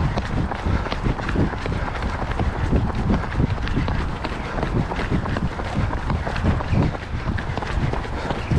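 Running shoes thud and patter quickly on a paved path.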